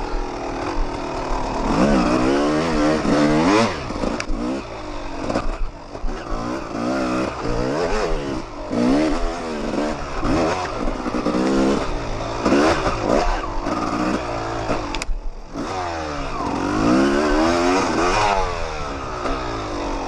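A dirt bike engine revs up and down as it climbs and drops through the gears.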